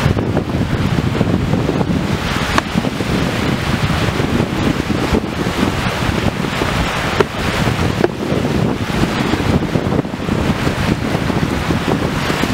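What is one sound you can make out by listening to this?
Small waves wash onto a shore.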